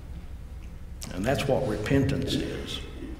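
An elderly man speaks calmly into a microphone in a reverberant room.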